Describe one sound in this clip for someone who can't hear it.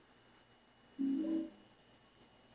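A short low chime sounds.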